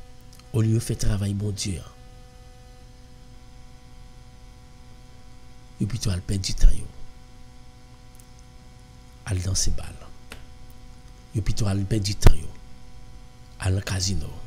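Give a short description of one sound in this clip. A man speaks slowly and solemnly into a close microphone, with pauses between phrases.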